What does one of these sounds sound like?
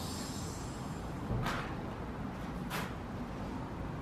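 A car's rear door slams shut.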